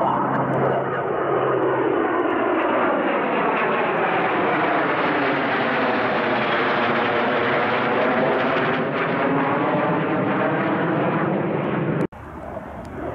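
Two jet planes roar loudly overhead as they fly past.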